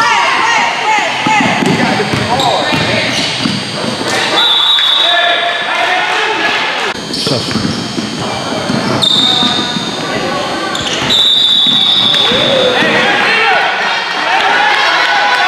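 Spectators and players call out in an echoing gym.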